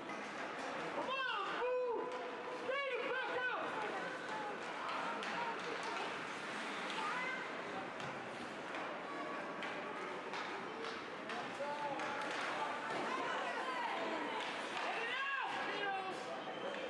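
Spectators nearby shout and cheer.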